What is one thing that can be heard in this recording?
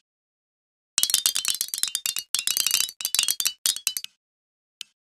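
Metal balls clatter and click against one another.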